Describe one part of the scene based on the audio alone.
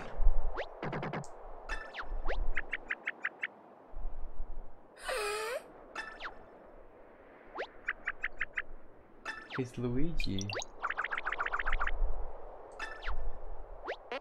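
Quick electronic chirps patter in short bursts.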